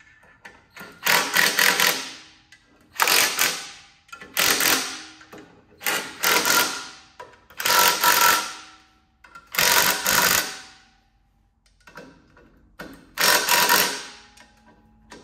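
A cordless impact wrench rattles in short loud bursts.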